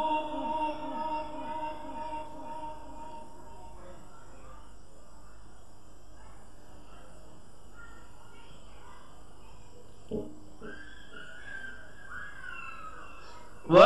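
A man chants in a long, drawn-out voice through a microphone and loudspeakers.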